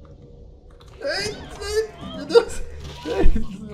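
A zombie growls as it attacks.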